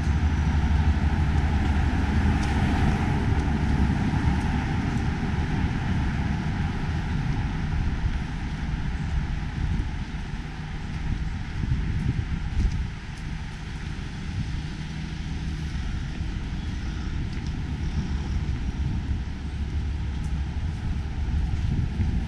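Traffic hums steadily in a street.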